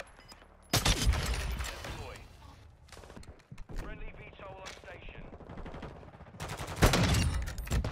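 A sniper rifle fires loud, booming shots that echo away.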